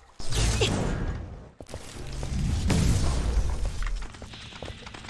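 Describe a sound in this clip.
An energy shield crackles and hums.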